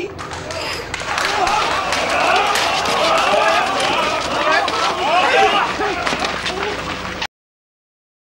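A crowd of men shouts and cheers as they rush forward.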